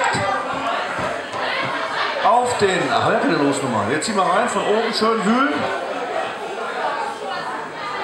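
A middle-aged man speaks into a microphone through a loudspeaker.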